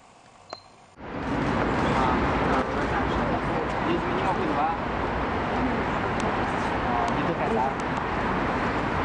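Several adults talk at once outdoors in a noisy crowd.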